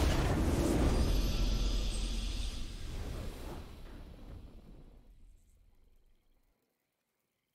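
A triumphant game fanfare swells and then slowly fades away.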